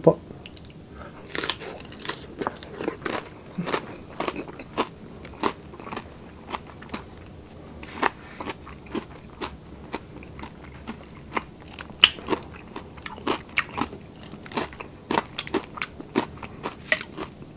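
A man chews crunchy food loudly and close up.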